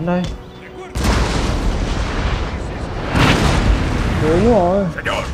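Musket volleys crackle and rumble.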